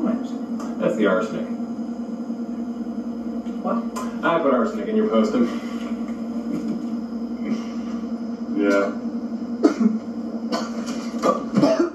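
A young man talks and chuckles nearby.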